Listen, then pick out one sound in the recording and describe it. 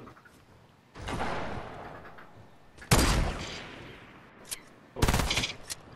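A rifle fires loud, booming shots that ring out and fade.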